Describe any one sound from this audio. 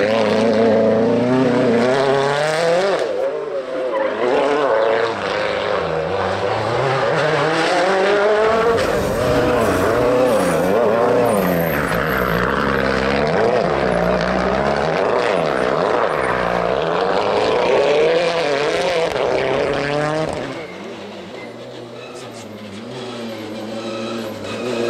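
A rally car engine revs hard and roars past nearby.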